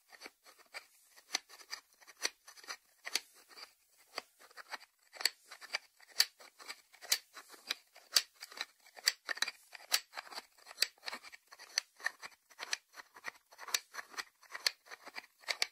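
Fingertips tap lightly on a ceramic lid, making small, crisp clicks.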